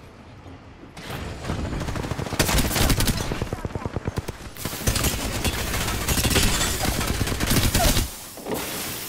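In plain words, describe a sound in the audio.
Rapid gunfire rattles loudly, close by.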